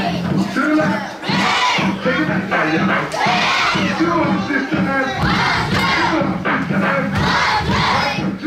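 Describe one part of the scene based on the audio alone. Children's feet stomp and shuffle on a wooden floor.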